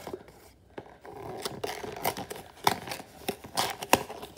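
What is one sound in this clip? Cardboard packaging crinkles and tears open.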